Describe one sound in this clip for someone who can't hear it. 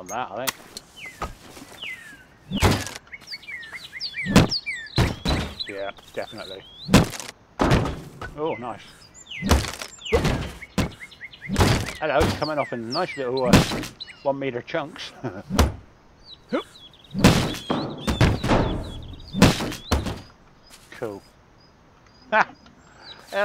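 A sledgehammer strikes wood and brick with heavy, repeated thuds.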